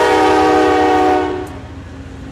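A locomotive horn blares loudly.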